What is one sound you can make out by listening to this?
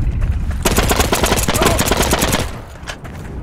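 A rifle fires a string of shots.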